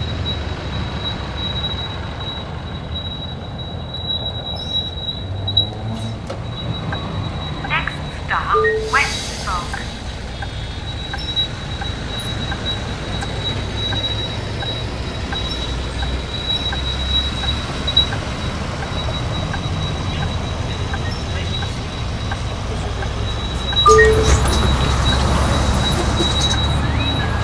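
A bus engine hums low and steady as the bus drives.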